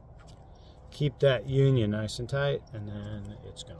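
An older man speaks calmly, close by.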